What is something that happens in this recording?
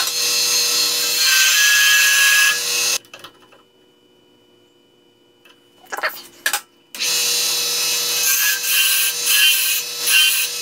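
A gouge scrapes and hisses loudly against spinning wood.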